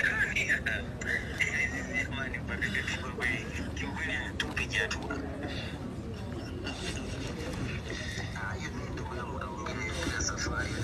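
A crowd murmurs and chatters close by.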